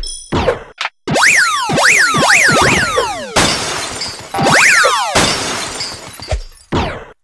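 Bright sparkling chimes ring out as the character collects items.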